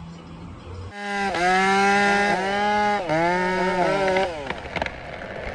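A chainsaw revs and cuts into a tree trunk.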